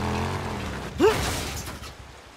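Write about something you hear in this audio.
A motorcycle crashes with a loud thud.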